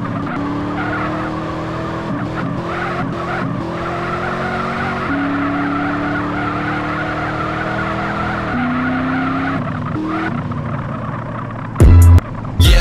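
Tyres screech while sliding.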